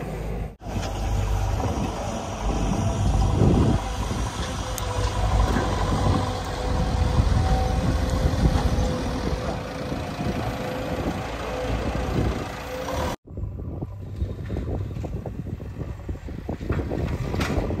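A diesel excavator engine rumbles and whines steadily.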